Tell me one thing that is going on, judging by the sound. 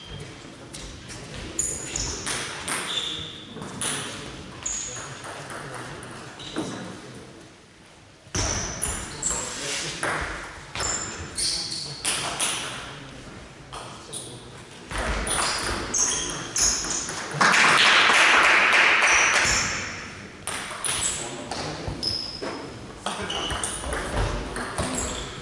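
Sports shoes squeak on a hall floor.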